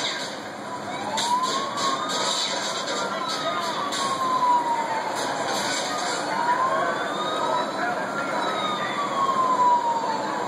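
A police siren wails from a video game, rising and falling slowly.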